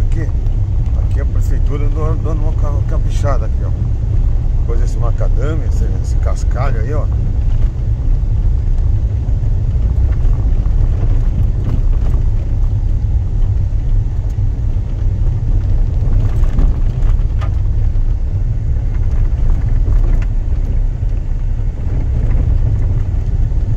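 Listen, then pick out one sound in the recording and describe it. Tyres rumble steadily over a gravel road.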